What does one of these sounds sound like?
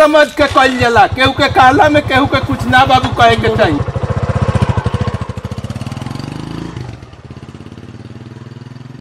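A motorcycle engine idles with a steady throb.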